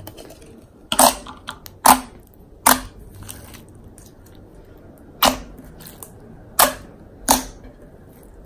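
Hands pat and slap sticky slime, making sharp wet pops.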